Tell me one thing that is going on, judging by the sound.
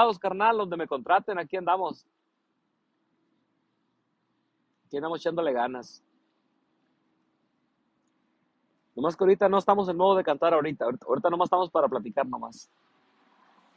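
A man talks calmly and warmly close to the microphone, in short bursts with pauses.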